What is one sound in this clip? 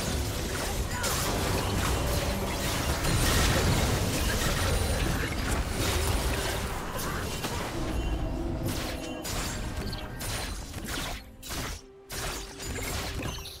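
Game spells burst and crackle in a busy fight.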